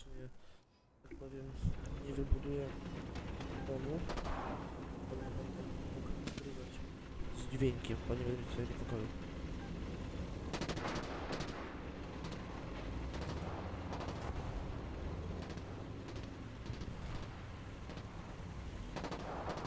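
Tank engines rumble and clatter nearby.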